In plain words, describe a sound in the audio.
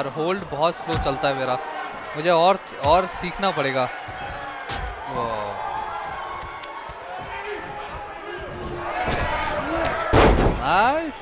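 Bodies slam onto a wrestling mat.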